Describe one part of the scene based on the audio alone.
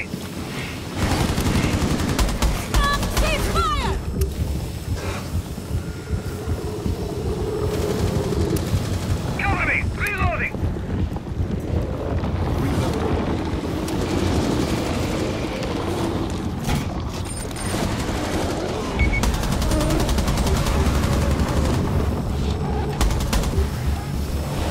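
Rapid gunshots fire in bursts.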